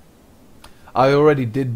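A young man speaks loudly and animatedly into a close microphone.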